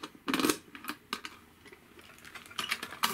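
A metal lid creaks and clatters as it is lifted open.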